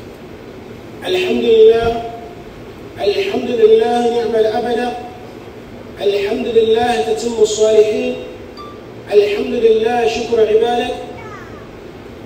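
A man speaks loudly and with feeling in short phrases, echoing in a large room.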